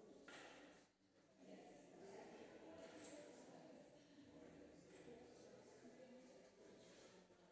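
People murmur quietly in a large echoing hall.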